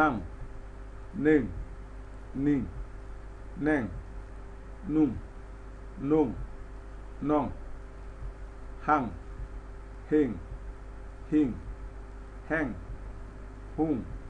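A man reads out single syllables slowly and clearly, close to a microphone, with a steady pause after each.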